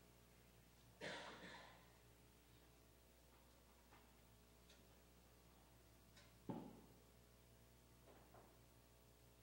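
A piano plays soft, sparse chords that ring out in a large hall.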